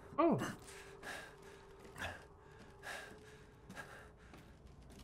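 Slow footsteps thud on creaking wooden floorboards.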